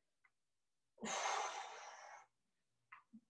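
A woman exhales heavily close by.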